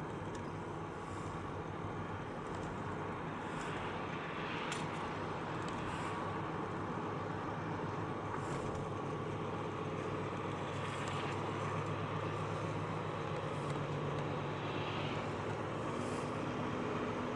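Oncoming cars swoosh past one after another.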